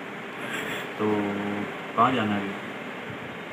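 A young man speaks quietly into a phone, close by.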